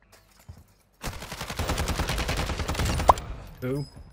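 Rapid gunfire rattles in a short burst.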